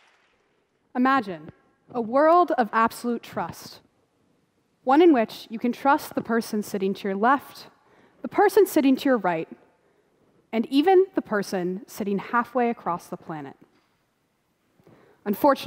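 A young woman speaks calmly into a microphone in a large hall.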